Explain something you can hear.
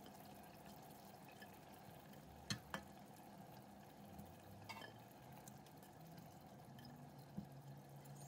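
Pieces of cauliflower plop softly into thick sauce in a pot.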